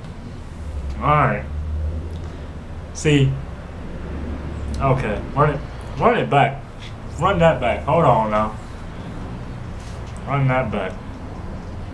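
A young man speaks close by in short, animated bursts.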